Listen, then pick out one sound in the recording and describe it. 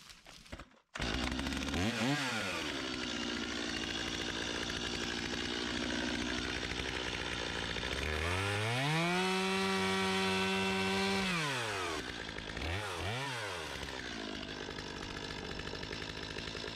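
A chainsaw engine idles with a steady rattle.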